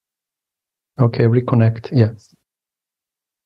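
A middle-aged man speaks briefly and with animation over an online call.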